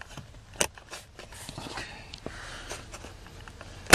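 A plastic connector clicks as it is unplugged.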